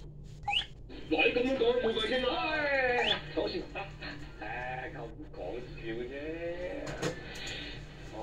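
Playful game sounds and a cartoon voice play from small device loudspeakers.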